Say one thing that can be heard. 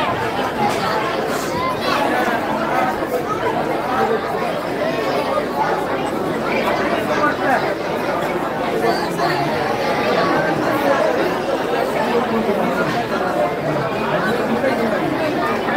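A crowd of men murmurs and chatters nearby.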